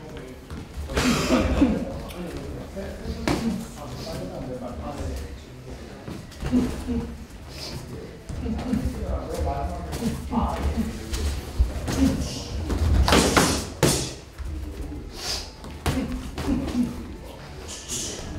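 Boxing gloves thud against padded targets in quick bursts.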